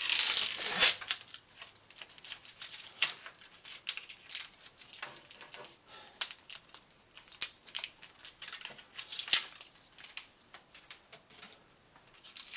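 Small clicks and taps come from plastic pieces being handled.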